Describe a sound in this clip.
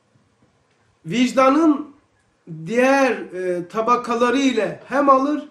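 An elderly man reads aloud in a melodic chanting voice, close to a microphone.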